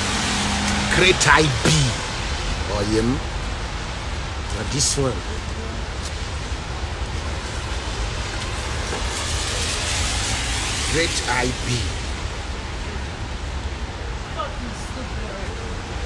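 A young man talks casually and close to the microphone, in short bursts.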